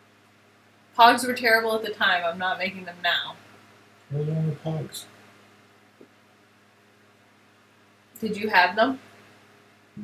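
A woman talks with animation through a microphone.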